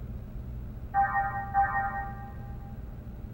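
A game menu chimes as a choice is confirmed.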